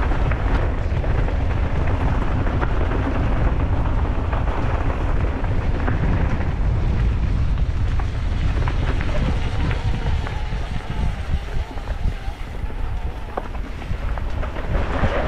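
A bicycle frame clanks and rattles over bumps.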